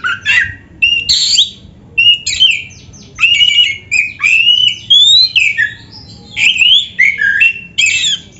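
A songbird sings loud, varied whistling phrases in short bursts.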